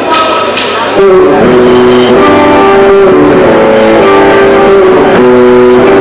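A rock band plays loudly on electric guitars and drums.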